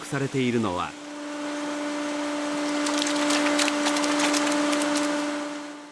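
Water splashes and churns as a net scoops through a tank.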